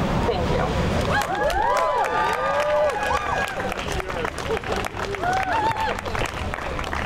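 A crowd of men and women cheers.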